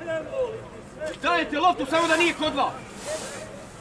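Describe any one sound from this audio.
Young men shout to each other outdoors at a distance.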